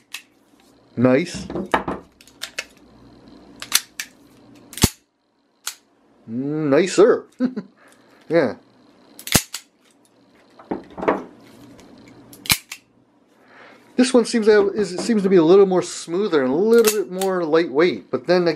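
Metal parts of a revolver click and clack as they are handled.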